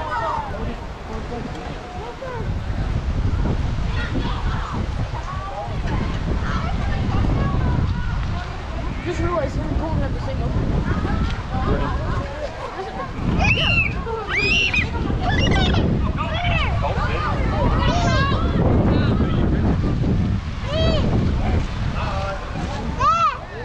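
Children shout and cheer outdoors in the open air.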